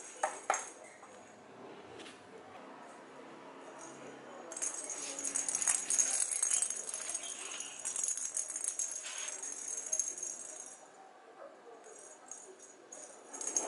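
Kittens' paws patter on a hard floor.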